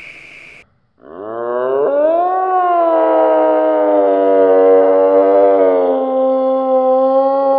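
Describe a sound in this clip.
A deer bleats in a long, wavering call.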